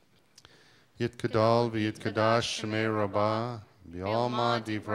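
A congregation sings together.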